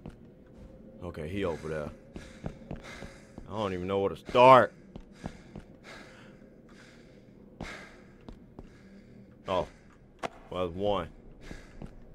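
A young man speaks close to a headset microphone, in short tense bursts.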